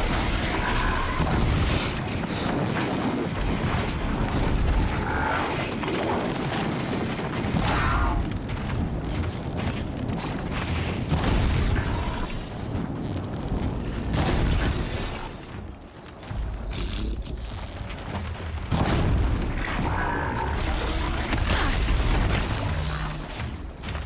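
A machine creature roars and clanks as it charges.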